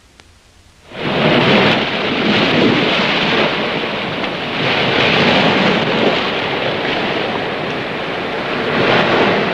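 Waves crash and surge against rocks outdoors.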